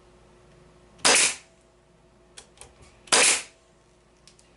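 A nail gun fires with sharp bangs.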